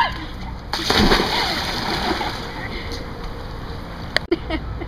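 Water sloshes and churns, slowly settling.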